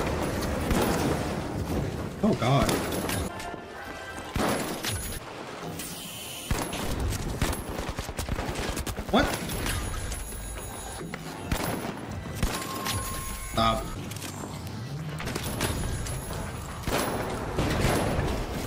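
An explosion booms and roars with flames.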